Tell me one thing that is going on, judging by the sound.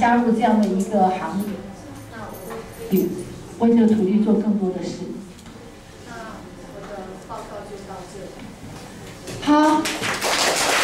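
A woman speaks calmly to an audience in a room.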